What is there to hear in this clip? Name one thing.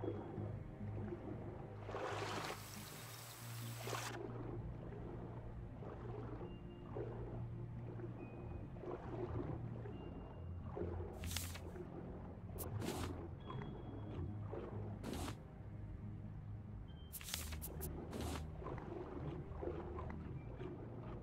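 Water rumbles low and steady, muffled as if heard underwater.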